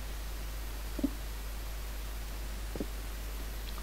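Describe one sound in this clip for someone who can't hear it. A pickaxe knocks against stone blocks.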